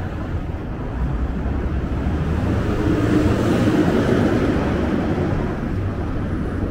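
A car passes close by, swelling and fading.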